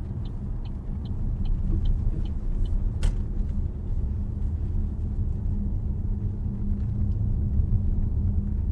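A car's engine and tyres hum steadily from inside the cabin while driving.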